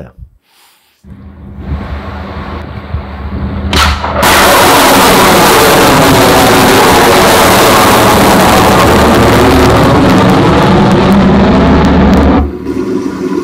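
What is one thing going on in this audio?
A rocket roars loudly as it launches, heard through loudspeakers.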